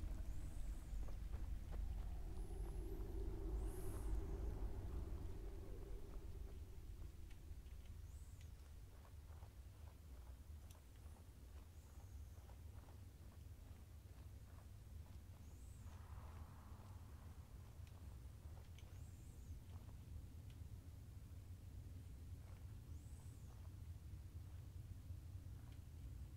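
A small fire crackles and hisses softly close by.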